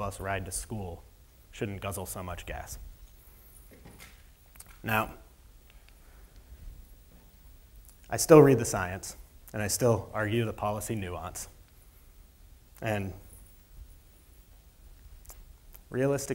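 A man speaks calmly into a microphone in a large hall, with pauses between phrases.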